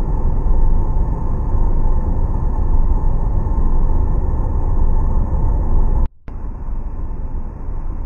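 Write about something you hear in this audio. A bus engine hums with a low, steady rumble.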